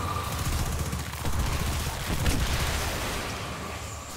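An energy blast crackles and bursts.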